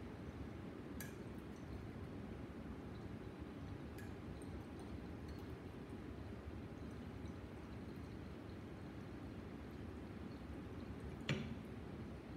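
A glass flask clinks softly.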